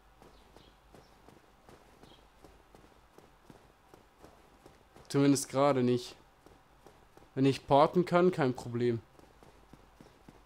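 Armoured footsteps clink on stone steps.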